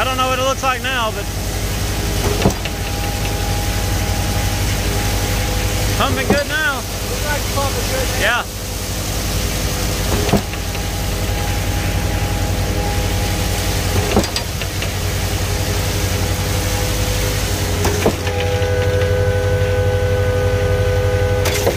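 A truck engine hums steadily nearby.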